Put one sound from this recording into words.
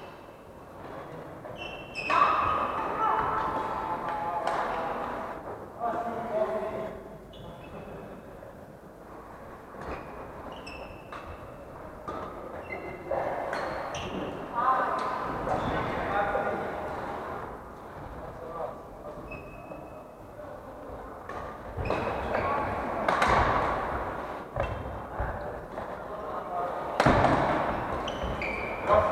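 Young adults talk and laugh casually nearby in a large echoing hall.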